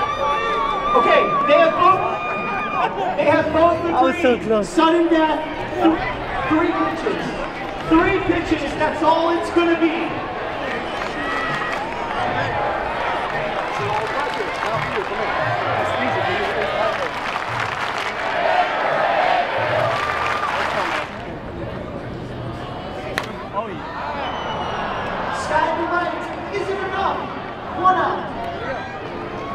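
A large crowd murmurs and cheers across an open stadium.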